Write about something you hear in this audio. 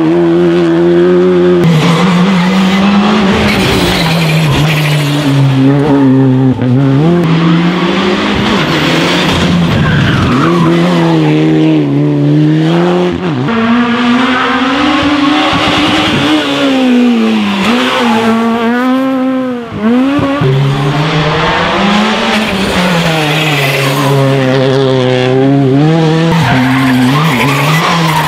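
Rally car engines roar and rev hard, rising and falling in pitch as the cars speed past one after another.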